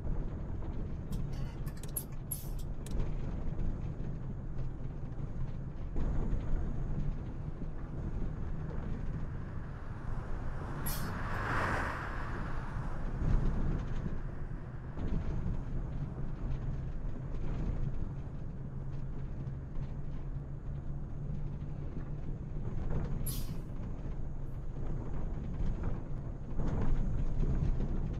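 A bus engine hums steadily while driving.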